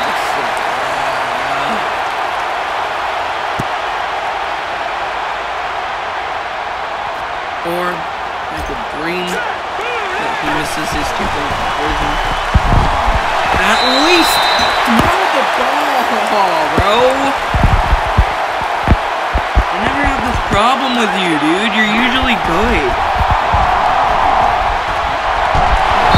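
A large crowd roars steadily in a stadium.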